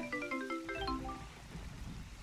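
A short, bright musical jingle plays.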